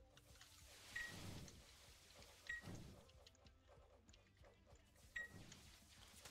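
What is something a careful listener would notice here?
Game sound effects chime with a sharp ring.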